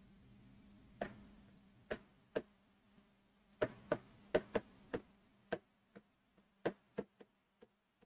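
A marker taps and squeaks on a board in short bursts.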